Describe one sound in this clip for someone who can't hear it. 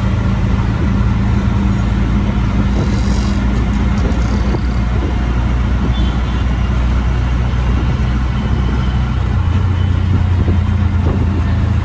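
Wind rushes past an open vehicle.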